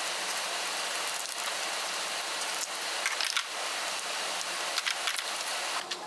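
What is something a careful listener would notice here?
A ratchet clicks.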